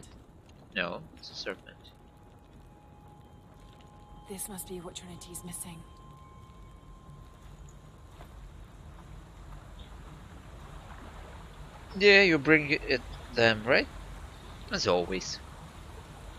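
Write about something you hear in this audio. A young woman speaks calmly and quietly.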